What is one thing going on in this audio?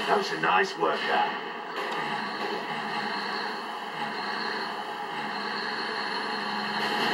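A heavy truck engine rumbles steadily through a television speaker.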